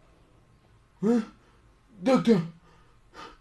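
A man shouts in short angry bursts.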